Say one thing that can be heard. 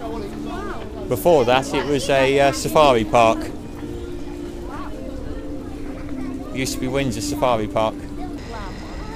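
Adults and children chatter nearby outdoors.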